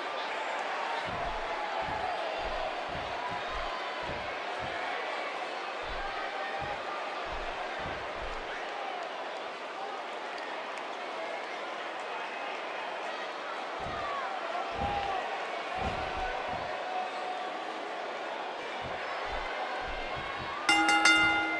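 A large crowd cheers and chants steadily in a big arena.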